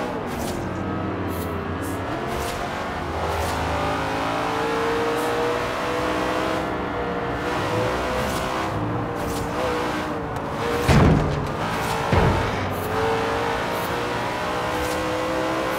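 Cars rush past closely.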